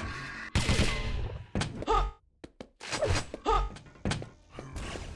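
Gunshots ring out in sharp, separate bursts.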